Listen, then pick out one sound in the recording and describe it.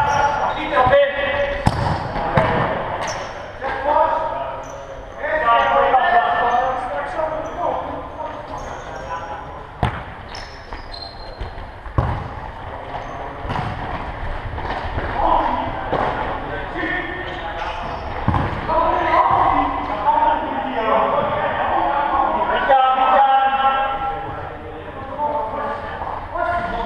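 Men shout and call out to each other across the court.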